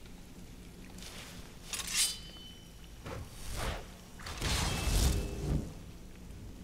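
A blade whooshes through the air.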